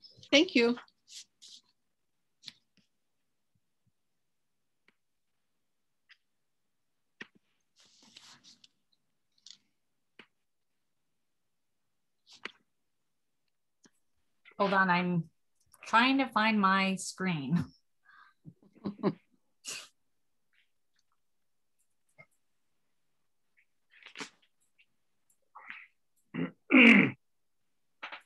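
A woman speaks over an online call, in short bursts with pauses.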